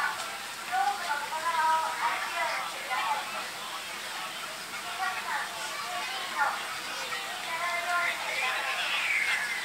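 A crowd of young men and women chatters and calls out nearby, outdoors.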